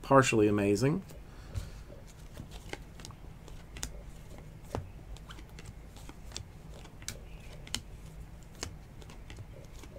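Trading cards flick and slap against each other as they are sorted by hand.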